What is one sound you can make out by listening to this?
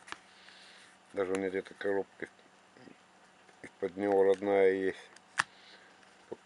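Small plastic buttons click as a finger presses them.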